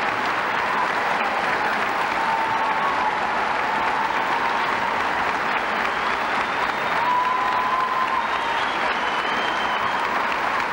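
People in a crowd whistle shrilly.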